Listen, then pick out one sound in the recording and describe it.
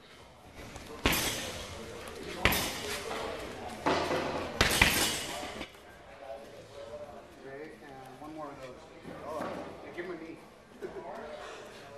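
Gloved fists thump hard against a heavy punching bag.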